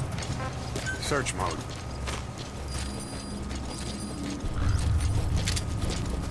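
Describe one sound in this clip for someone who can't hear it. Footsteps shuffle softly on hard ground.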